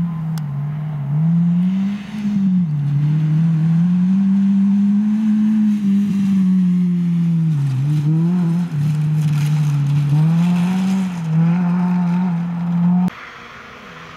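A rally car engine revs hard through gear changes as the car speeds along a gravel road.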